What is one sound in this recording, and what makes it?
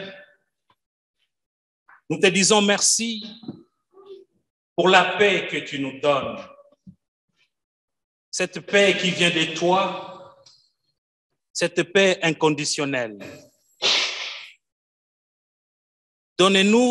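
A man speaks slowly and solemnly through a microphone, in a large echoing hall, with pauses between phrases.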